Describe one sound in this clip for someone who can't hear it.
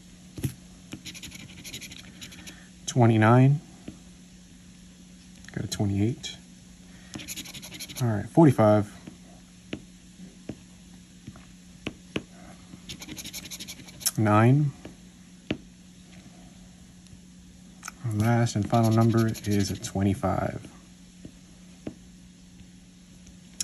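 A coin scrapes across a scratch card in short, rasping bursts.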